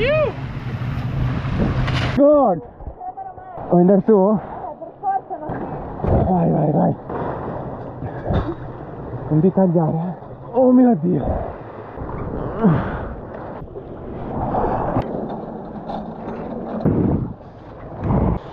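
Water splashes and laps close by.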